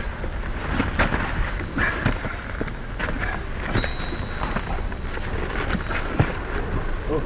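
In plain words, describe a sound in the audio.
Punches land with dull thuds during a fistfight.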